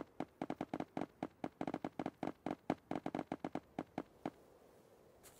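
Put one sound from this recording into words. Blocks are placed one after another with rapid soft thuds.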